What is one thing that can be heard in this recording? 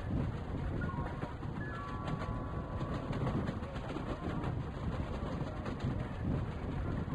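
A locomotive engine rumbles steadily as a train rolls along.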